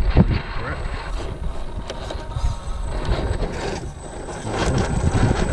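Tyres scrape and grind on rock.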